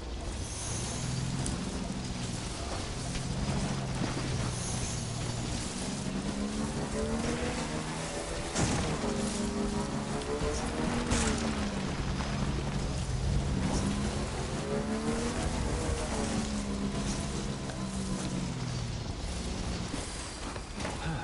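A motorbike engine hums and revs.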